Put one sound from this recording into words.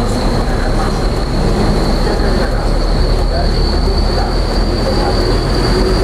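Traffic hums and passes on a busy street.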